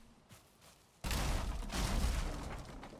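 Wood creaks and thuds as a structure is built.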